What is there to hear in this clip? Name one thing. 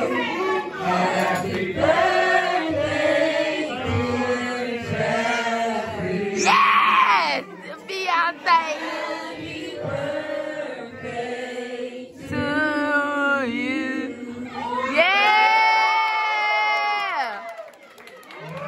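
A woman sings out loud and strong.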